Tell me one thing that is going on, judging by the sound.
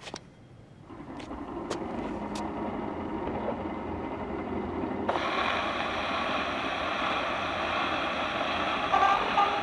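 A gramophone record plays music with a faint crackle.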